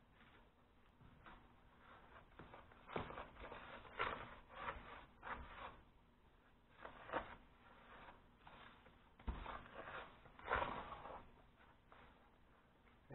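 Fingers stir and rustle through dry crumbs.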